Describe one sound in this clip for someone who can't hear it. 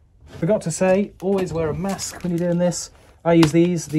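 A plastic bag crinkles.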